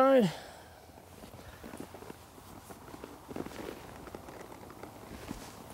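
A saddle creaks as a man climbs onto a horse.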